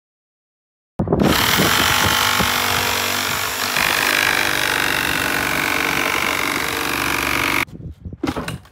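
A reciprocating saw buzzes loudly, cutting through a metal panel.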